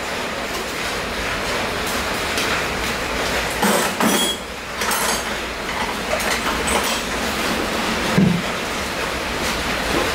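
Sandals shuffle and slap on a concrete floor.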